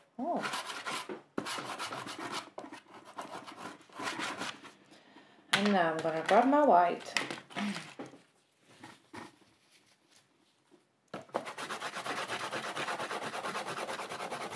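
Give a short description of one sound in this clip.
Soft pastel scrubs across paper in quick, rhythmic strokes.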